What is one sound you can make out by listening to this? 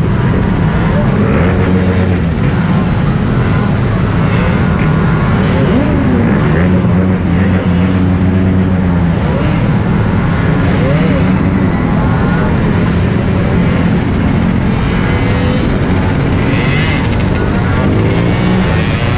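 Other motorcycle engines rev and drone nearby.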